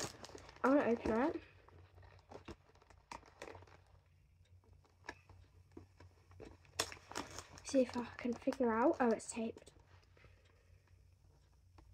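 Cardboard packaging rustles and scrapes as a box is opened.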